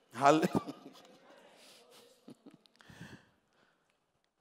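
A man speaks loudly and with animation through a microphone.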